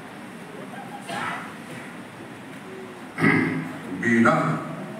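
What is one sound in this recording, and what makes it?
A man speaks into a microphone, heard over loudspeakers in an echoing hall.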